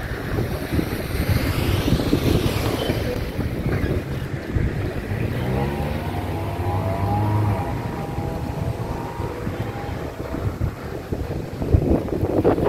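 Wind blows in strong, rumbling gusts outdoors.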